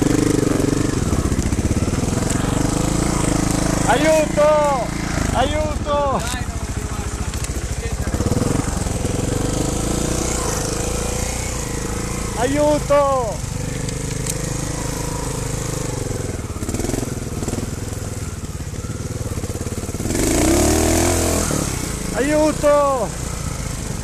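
A motorbike engine idles close by with a steady low throb.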